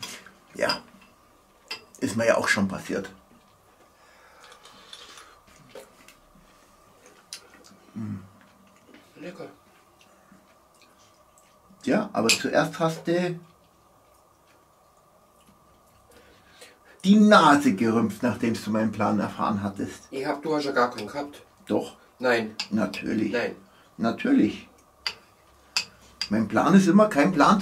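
A middle-aged man talks calmly close by, in short bursts with pauses.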